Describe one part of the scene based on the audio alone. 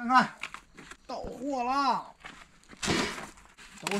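A cardboard box thumps onto a wooden table.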